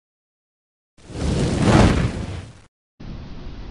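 A whooshing puff of smoke swells and fades.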